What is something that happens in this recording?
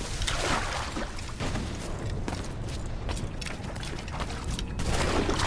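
Footsteps run quickly through wet undergrowth.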